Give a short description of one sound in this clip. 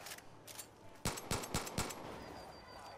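Pistol shots ring out in quick succession.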